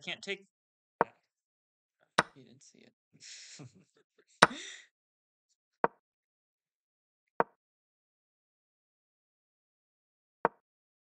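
Chess pieces knock sharply on a board.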